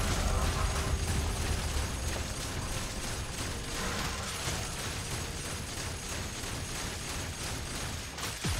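Game characters clash in a fight with spell effects and impacts.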